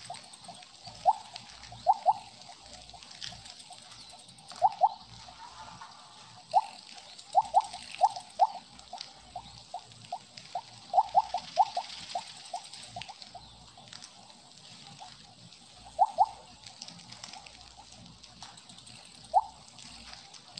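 Short, bright electronic blips ring out again and again from a game.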